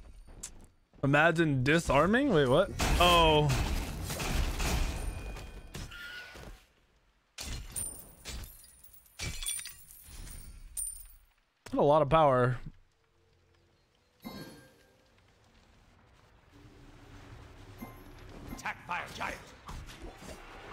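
Game combat effects clash, whoosh and blast.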